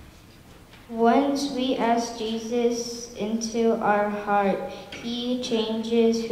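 Young children call out answers together in an echoing room.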